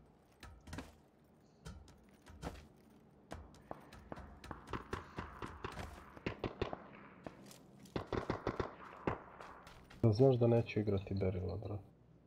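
Footsteps clang on hollow metal.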